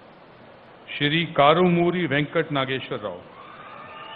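A man speaks steadily through a microphone over loudspeakers.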